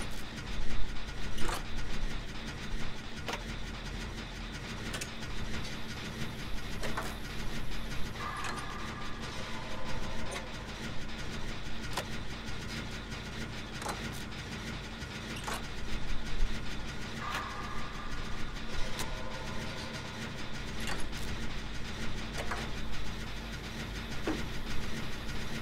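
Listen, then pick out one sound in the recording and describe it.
Metal parts clatter and click as a generator is repaired.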